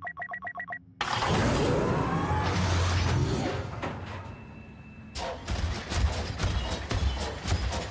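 A heavy mechanical walker stomps forward.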